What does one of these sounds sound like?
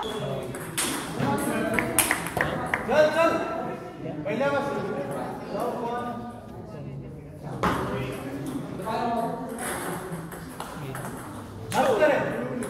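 A ball clicks against paddles and the table.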